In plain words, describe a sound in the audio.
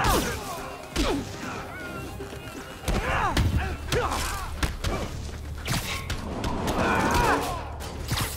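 Electric crackles zap during the fight.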